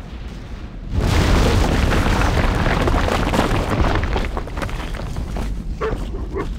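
Fire roars loudly.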